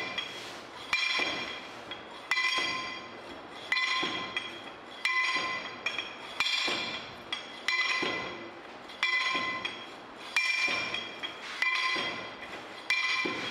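A heavy metal rammer strikes repeatedly into a metal mould, each blow clanging and ringing.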